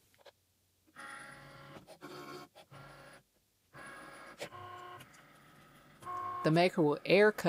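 A cutting machine's motor whirs as its carriage slides back and forth.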